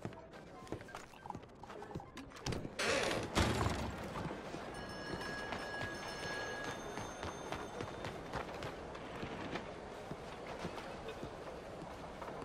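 Footsteps clatter on hard pavement at a quick pace.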